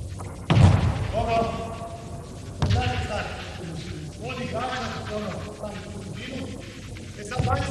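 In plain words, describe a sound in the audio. A man talks calmly at a distance.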